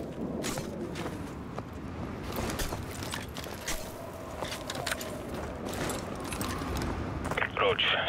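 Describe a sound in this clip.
Boots crunch through snow in quick steps.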